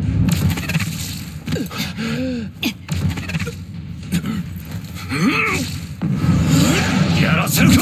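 Sharp whooshes and heavy blows of a fight ring out.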